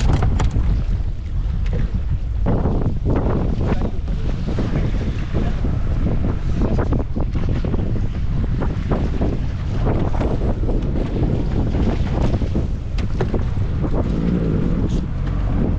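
Wind blows loudly over open water.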